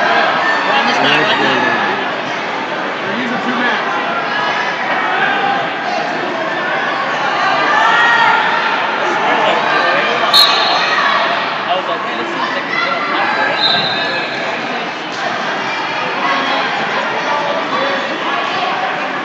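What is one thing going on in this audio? A crowd of adults and children chatters throughout a large echoing hall.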